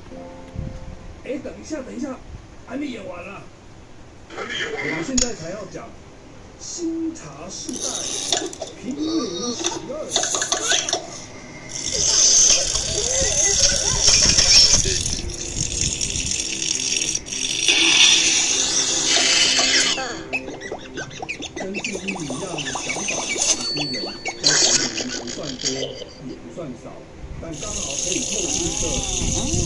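Game sound effects chime from a tablet speaker.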